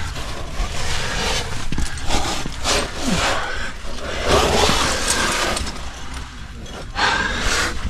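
Hands scrape and grip on rough rock.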